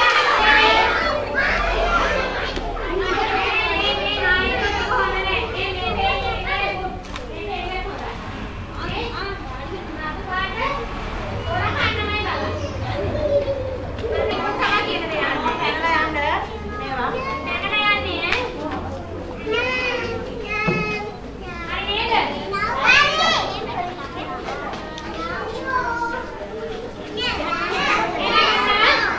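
Children chatter and shout in a large echoing hall.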